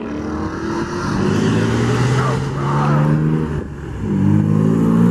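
A second sports car accelerates hard toward and past.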